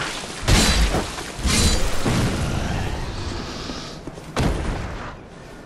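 Metal weapons clash and strike with heavy impacts.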